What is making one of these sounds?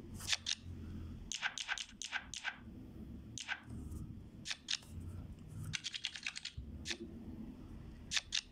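Game cards make quick snapping, flicking sounds in bursts.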